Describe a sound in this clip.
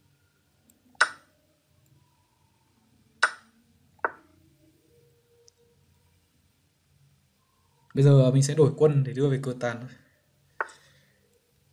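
Chess pieces click sharply as they are set down on a board.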